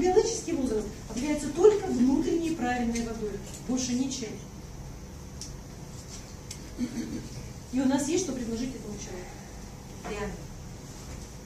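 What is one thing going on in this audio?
A woman lectures calmly in a room with a slight echo.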